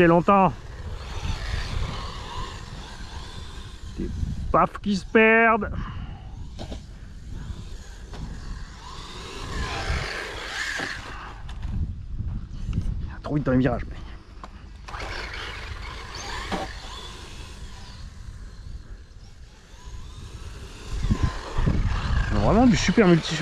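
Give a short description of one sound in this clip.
A small toy car's electric motor whirs as the car drives over artificial grass.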